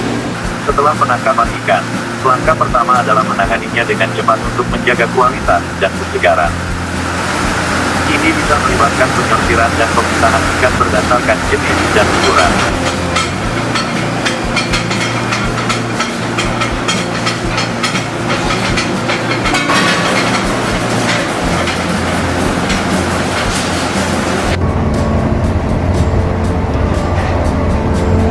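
Machinery hums steadily in a large echoing hall.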